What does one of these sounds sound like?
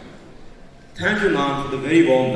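A young man speaks calmly into a microphone, heard through loudspeakers.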